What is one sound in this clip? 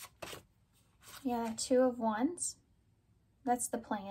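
A card is laid down softly on a table.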